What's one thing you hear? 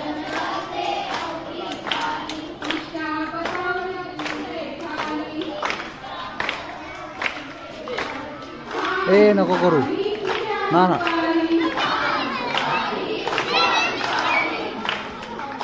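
A crowd of women and children chatters and calls out outdoors.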